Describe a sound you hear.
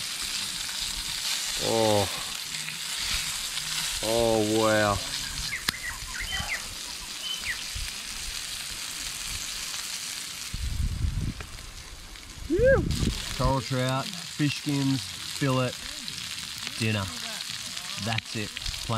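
Food sizzles in a frying pan.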